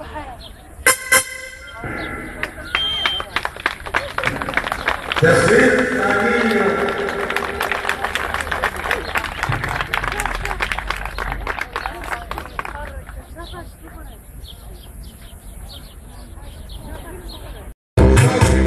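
A crowd of men cheers and chatters outdoors.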